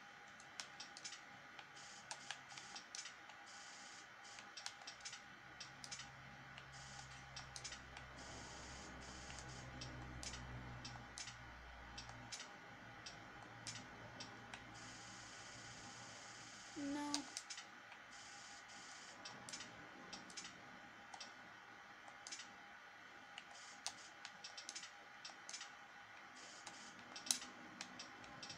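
Short menu clicks sound repeatedly as game selections change.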